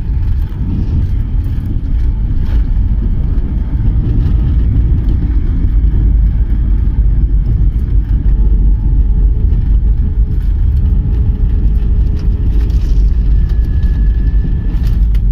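A jet airliner's engines roar loudly from inside the cabin as the plane rolls down the runway.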